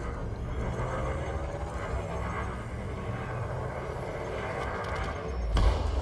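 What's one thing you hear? Laser cannons fire with buzzing zaps.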